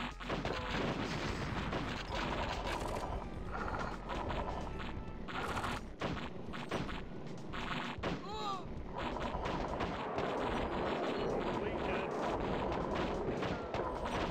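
Gunfire rattles rapidly.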